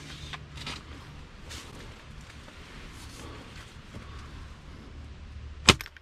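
A crossbow clicks and knocks as it is handled.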